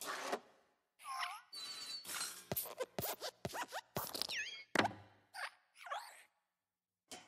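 A lamp's spring squeaks as it moves.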